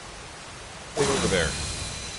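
A magic spell flares up with a crackling whoosh.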